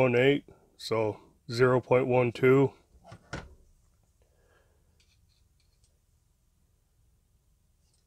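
Small metal tools click and tap softly as they are handled.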